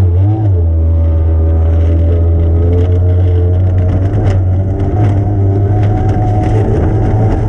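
A powerboat engine roars loudly and steadily at high speed.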